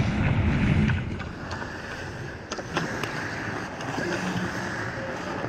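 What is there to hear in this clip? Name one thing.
Skates scrape and carve across the ice.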